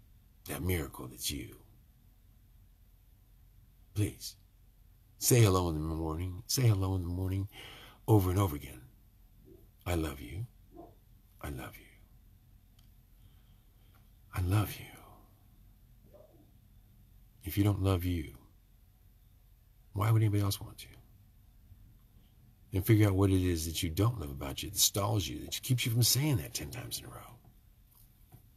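An older man speaks calmly and earnestly close to a microphone, with pauses.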